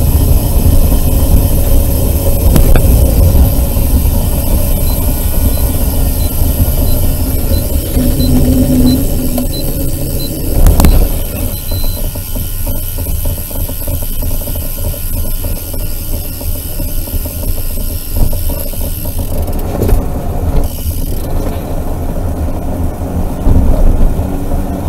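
Tyres rumble steadily on an asphalt road.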